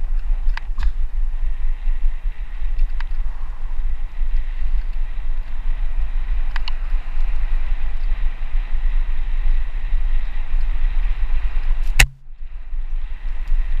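Wind rumbles loudly against a moving microphone.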